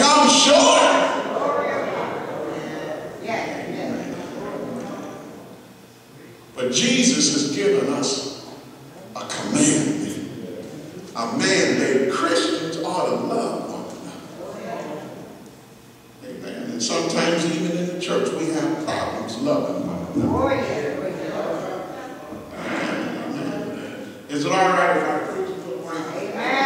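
An elderly man preaches with animation through a microphone in a large echoing hall.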